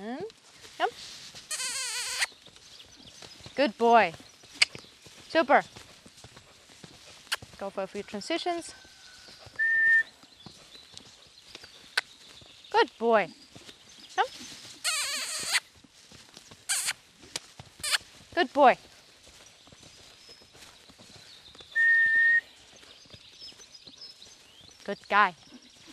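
A horse's hooves thud softly on sand as it canters.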